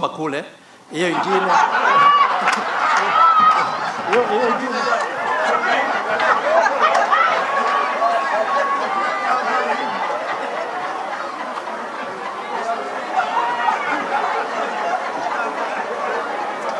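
A large crowd laughs and chatters loudly.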